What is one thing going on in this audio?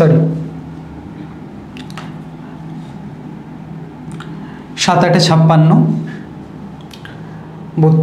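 A young man speaks calmly into a close microphone, explaining.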